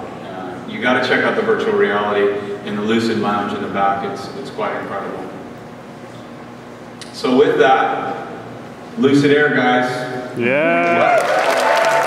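A man speaks with animation through loudspeakers in a large echoing hall.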